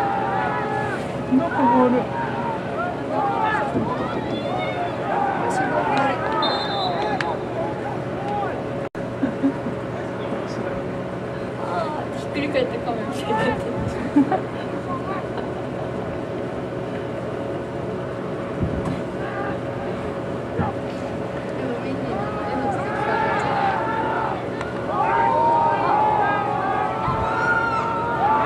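A nearby crowd of men and women shouts and cheers outdoors.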